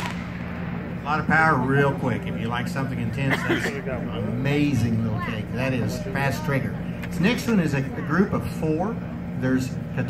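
A crowd of people nearby chatters outdoors.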